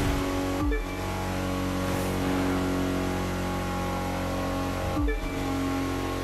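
A car engine shifts gears with a brief drop in pitch.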